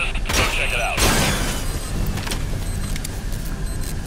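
A silenced gun fires a single muffled shot.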